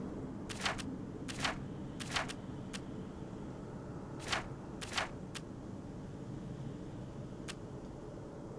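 Short soft menu clicks tick now and then as items are selected.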